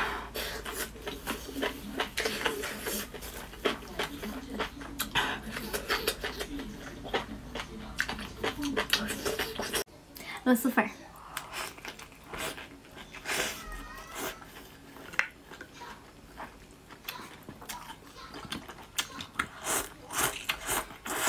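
A woman chews and smacks food close to a microphone.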